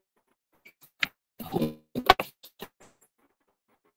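Knocks and rustling sound as a microphone is moved.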